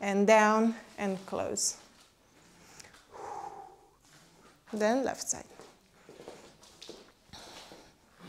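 Feet step and shuffle on the floor.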